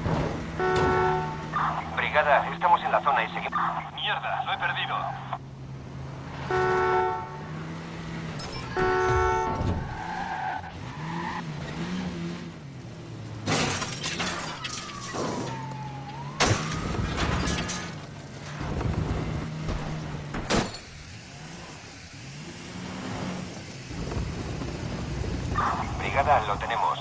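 A car engine hums and revs as the car drives fast.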